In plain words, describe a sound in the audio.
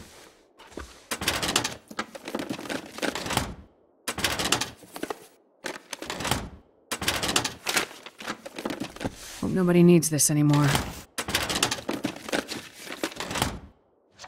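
A metal drawer slides open and shut.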